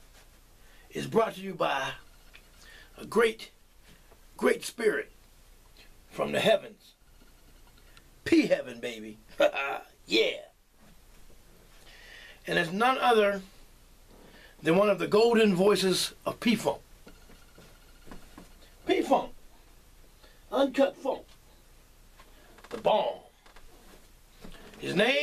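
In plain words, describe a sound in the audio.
A man talks with animation close by, in short bursts with pauses.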